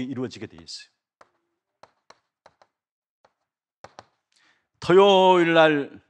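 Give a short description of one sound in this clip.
A middle-aged man speaks through a microphone.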